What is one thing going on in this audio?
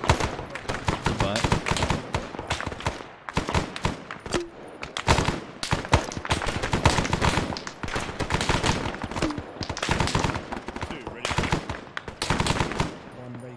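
Rapid gunfire cracks and echoes from several directions.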